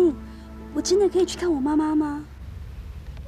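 A young woman speaks tearfully and softly, close by.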